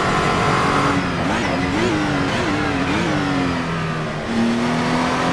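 A racing car engine crackles and pops as it slows for a bend.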